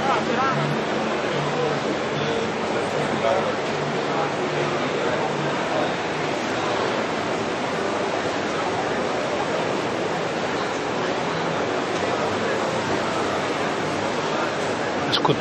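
A crowd of people chatter in a busy, echoing indoor space.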